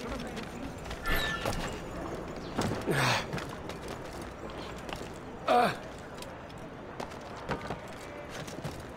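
Hands and boots thump and scrape while climbing a wall.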